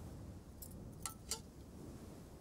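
A spoon clinks against a dish.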